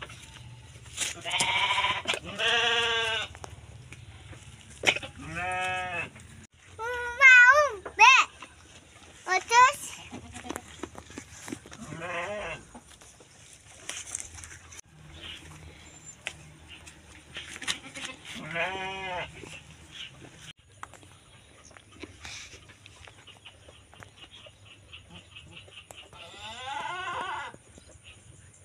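A goat bleats loudly and repeatedly close by.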